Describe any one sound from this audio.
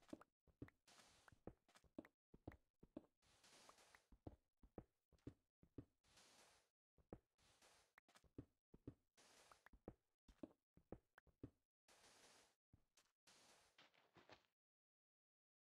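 Blocks thud softly as they are placed.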